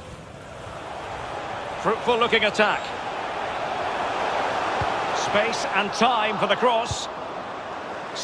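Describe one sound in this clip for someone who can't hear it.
A large crowd roars and swells in an open stadium.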